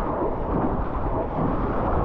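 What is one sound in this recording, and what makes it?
A hand paddles through the water.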